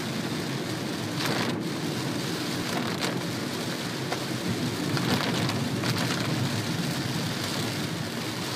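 Heavy rain drums steadily on a car windscreen.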